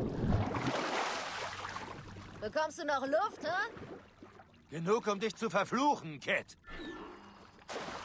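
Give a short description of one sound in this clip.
A swimmer splashes through water at the surface.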